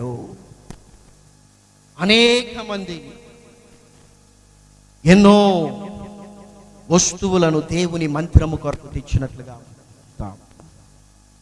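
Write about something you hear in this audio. A young man preaches with animation into a microphone in a reverberant hall, pausing between loud phrases.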